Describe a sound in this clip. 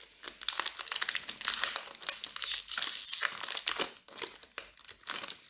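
Foil wrapping crinkles and tears up close.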